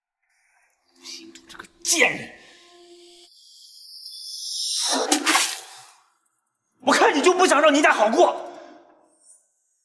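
A young man speaks with irritation, close by.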